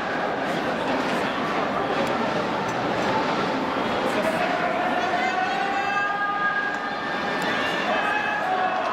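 A large stadium crowd chants and cheers loudly in unison.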